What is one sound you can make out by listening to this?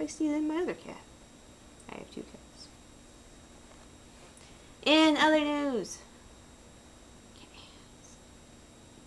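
A young woman speaks quietly close by.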